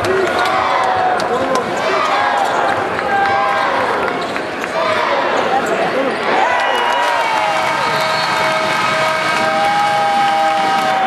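A large crowd cheers and shouts loudly in an echoing arena.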